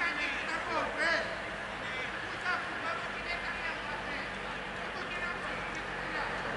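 Football players shout to each other in the distance, outdoors.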